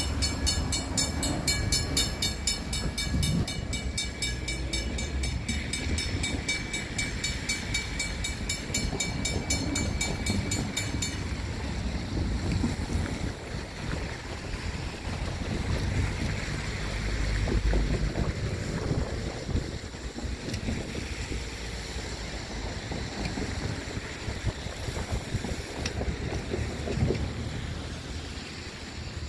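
A freight car rolls slowly away along the rails with a low rumble and clatter.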